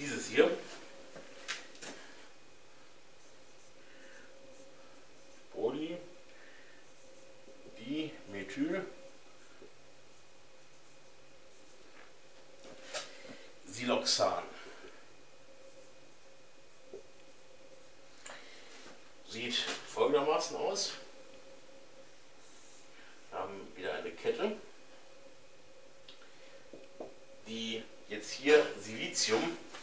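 A man speaks calmly in short bursts, with pauses.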